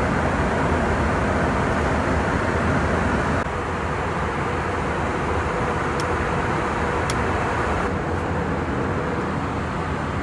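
A steady low roar of aircraft engines fills a cabin.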